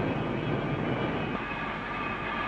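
Flames roar loudly from a furnace.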